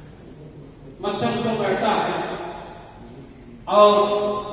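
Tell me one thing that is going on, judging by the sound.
A man speaks loudly into a microphone in an echoing room.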